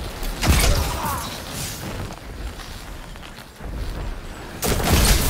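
A futuristic energy gun fires with loud zapping blasts.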